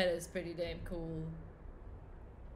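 A young woman speaks briefly and animatedly into a close microphone.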